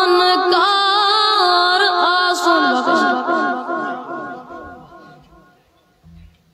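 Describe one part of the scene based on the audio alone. A boy chants melodically into a microphone, heard through loudspeakers.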